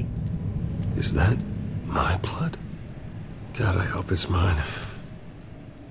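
A man speaks in a low, worried voice close by.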